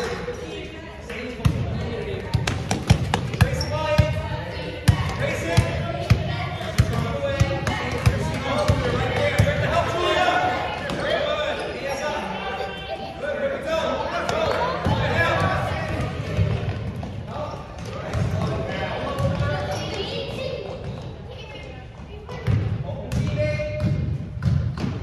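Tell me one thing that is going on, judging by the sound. Spectators in a crowd talk and cheer.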